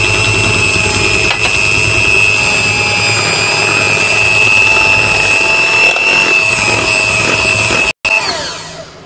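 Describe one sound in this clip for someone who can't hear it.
An electric hand mixer whirs loudly and steadily, then stops.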